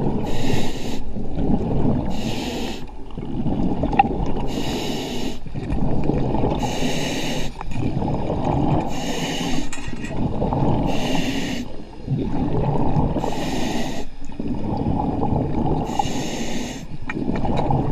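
Air bubbles rumble and gurgle loudly as a diver breathes out underwater.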